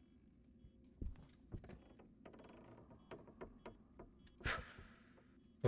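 Small clicks and knocks sound from a handheld device.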